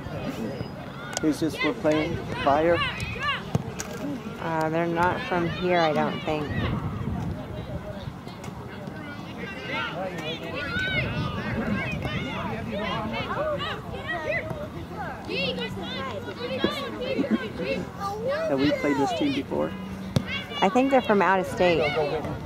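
Men and women cheer and shout encouragement outdoors nearby.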